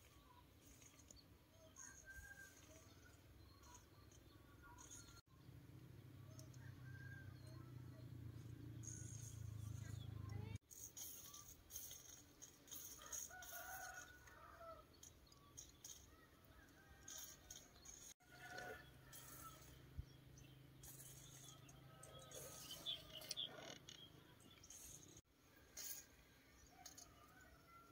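A hand tool scrapes and chops into dry soil close by.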